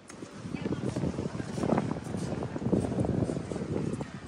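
Young women talk close by as they walk past.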